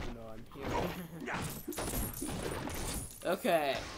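Coins jingle as they scatter.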